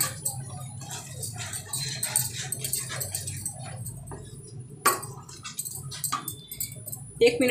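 A spatula scrapes and stirs thick sauce in a metal pan.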